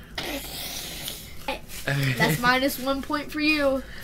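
A teenage boy laughs close to a microphone.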